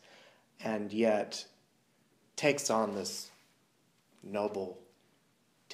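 A man speaks quietly and tensely in short phrases, close by.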